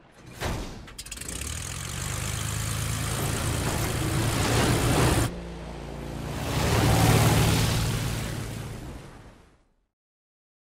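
A large fan engine roars loudly as it starts up and speeds away.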